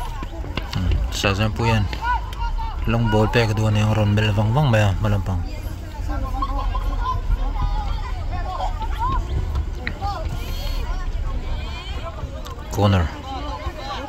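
Young boys shout to each other across an open field.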